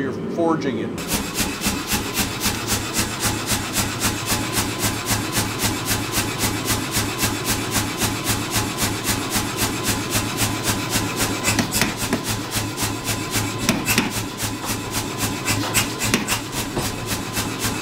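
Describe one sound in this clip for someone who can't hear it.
A power hammer pounds hot metal in a fast, steady rhythm.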